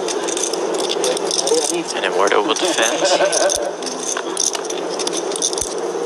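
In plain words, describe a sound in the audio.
Poker chips click softly as a player riffles them.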